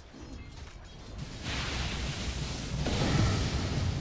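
Magic spells burst and crackle in a video game battle.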